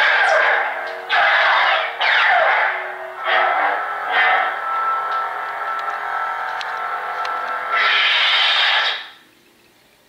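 A toy light saber whooshes as it is swung.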